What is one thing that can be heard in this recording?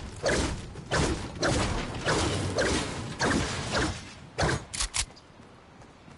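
A pickaxe strikes wood again and again with loud hard thuds.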